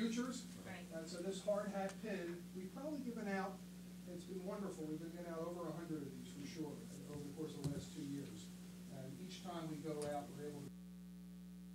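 A man speaks calmly through a microphone and loudspeakers in an echoing room.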